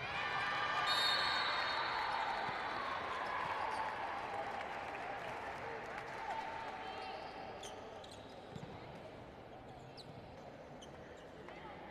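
A large crowd cheers loudly in an echoing hall and slowly quiets down.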